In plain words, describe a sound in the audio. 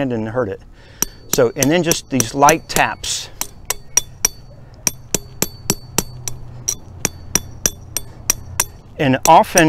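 A hand tool clicks sharply over and over at a steady pace.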